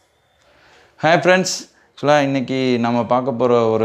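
A young man speaks calmly and clearly to the listener.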